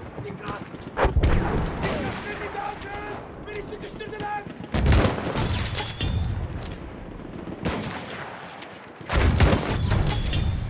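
A bolt-action rifle fires sharp shots.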